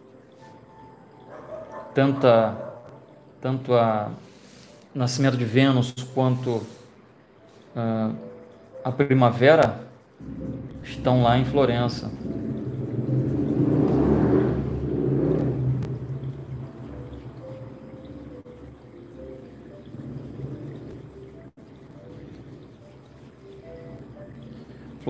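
A pencil scratches and shades softly on paper.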